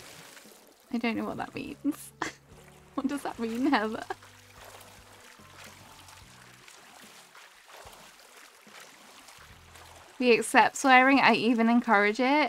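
A swimmer paddles and splashes gently through calm water.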